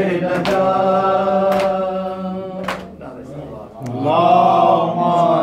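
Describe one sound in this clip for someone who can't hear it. A man chants in a long, melodic voice close by.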